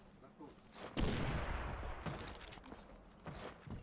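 An explosion booms loudly and rumbles away.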